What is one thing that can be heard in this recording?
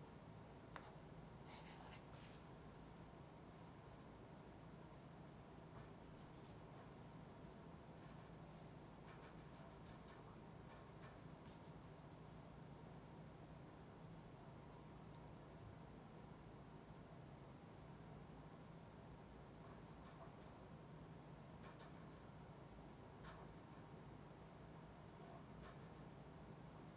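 Small plastic objects click and tap close by.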